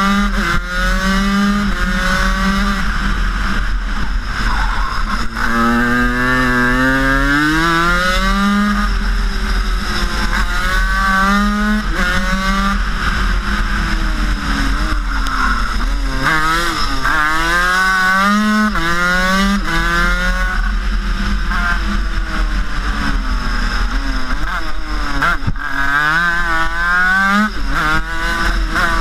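A kart engine buzzes loudly close by, rising and falling in pitch as it speeds up and slows down.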